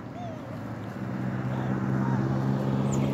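A car engine hums as the car drives along a nearby road.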